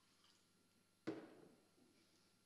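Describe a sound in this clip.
A glass knocks down on a table.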